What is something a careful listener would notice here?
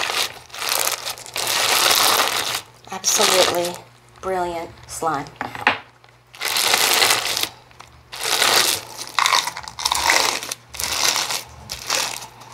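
Thick slime crackles and squelches as hands squeeze and knead it.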